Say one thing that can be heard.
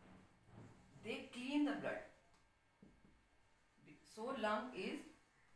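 A woman speaks calmly, as if teaching, close by.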